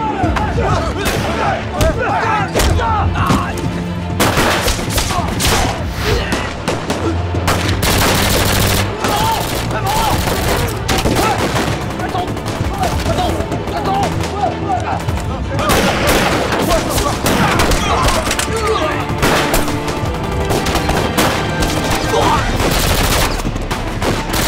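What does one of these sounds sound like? A crowd of men shouts and screams in panic.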